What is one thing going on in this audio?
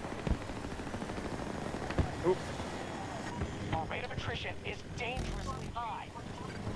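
A helicopter's rotor thuds steadily.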